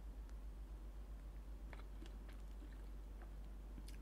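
Sauce squelches as food is stirred in a pan.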